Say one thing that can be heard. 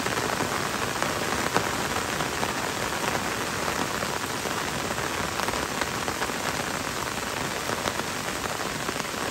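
Gentle rain patters on forest leaves.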